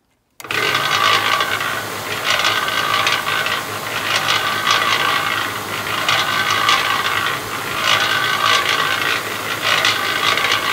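A concrete mixer drum turns with a rattling, grinding drone.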